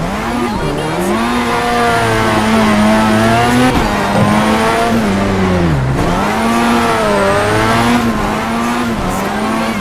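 Tyres squeal as a car slides through a turn.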